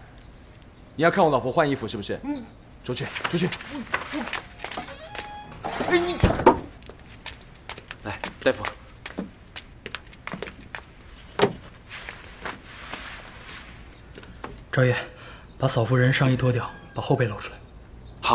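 A young man speaks urgently, close by.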